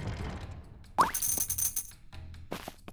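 A bright game chime rings out.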